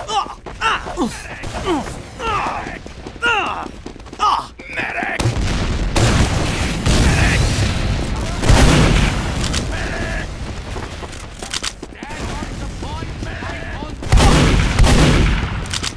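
Weapons fire and clash in a fast video game battle.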